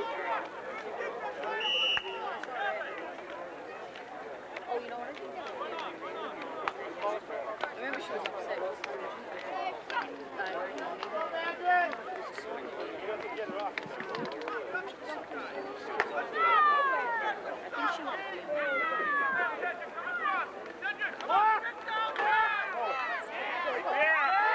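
Young boys shout and call out on a field.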